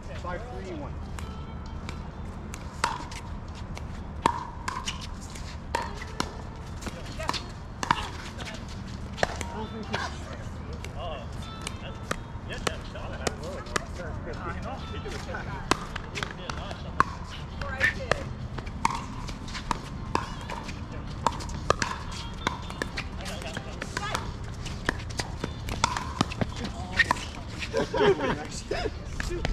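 Paddles smack plastic balls with sharp hollow pops, over and over, outdoors.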